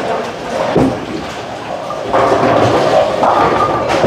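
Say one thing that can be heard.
A bowling ball rolls down a lane.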